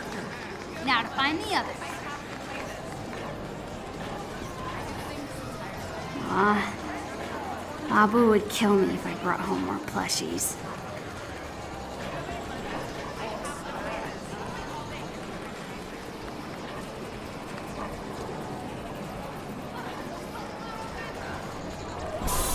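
Arcade machines beep and chime in a busy, noisy room.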